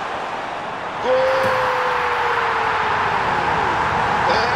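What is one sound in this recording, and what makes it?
A stadium crowd roars as a goal goes in.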